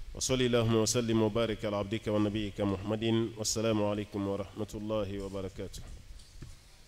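A man chants in a melodic voice through a microphone.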